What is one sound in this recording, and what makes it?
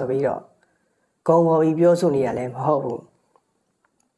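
A man chants slowly and calmly into a close microphone.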